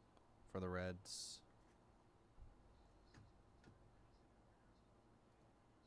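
A plastic card case clicks softly in hands.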